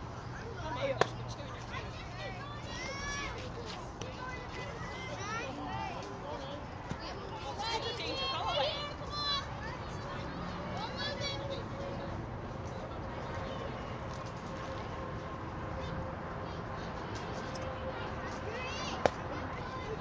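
A metal bat strikes a ball with a sharp ping.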